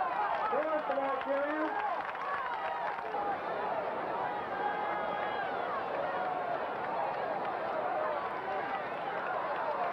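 A crowd of spectators cheers and chatters across an open field.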